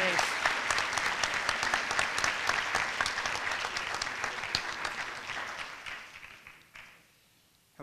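An audience applauds in a large hall, and the applause fades out.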